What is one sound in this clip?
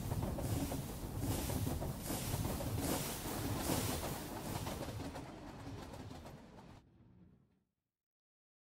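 A train engine rumbles and clatters along a track.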